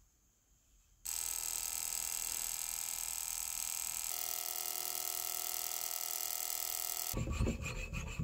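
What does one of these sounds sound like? An ultrasonic cleaner hums steadily with a high whine.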